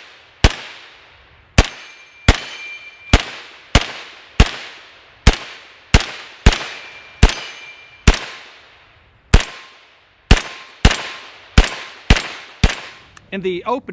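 A rifle fires single shots outdoors, each crack echoing off through the trees.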